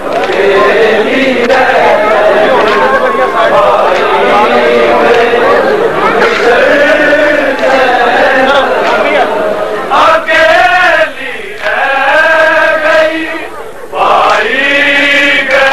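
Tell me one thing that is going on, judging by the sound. A large crowd of men shouts and chants loudly together.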